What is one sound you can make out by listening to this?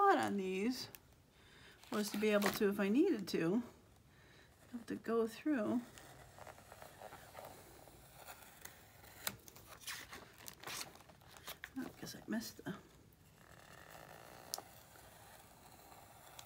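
A pencil scratches lightly on paper.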